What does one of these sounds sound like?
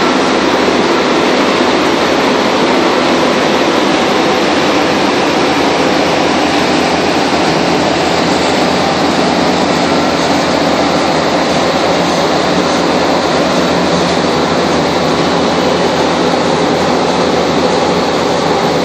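A paving machine's engine rumbles loudly and steadily nearby.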